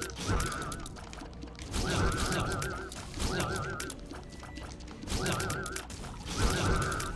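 Game shots pop and splat rapidly.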